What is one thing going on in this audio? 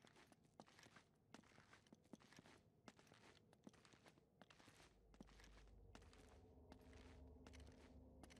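Footsteps tap on stone in an echoing passage.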